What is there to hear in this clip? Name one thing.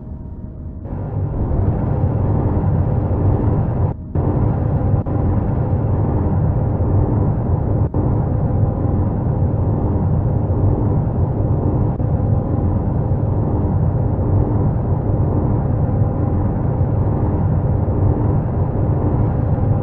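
A drill grinds steadily through rock with a deep, rumbling whir.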